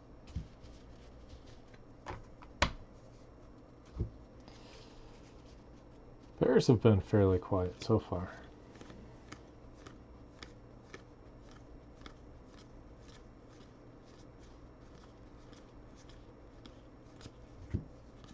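Cards are flicked through one by one with soft, quick ticks.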